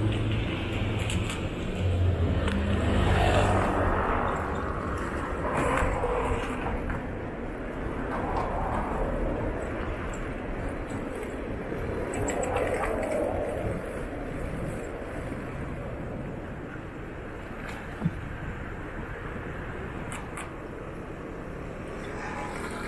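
A bicycle rolls along the road.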